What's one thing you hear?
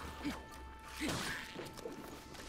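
A sword strikes a creature with a sharp clang.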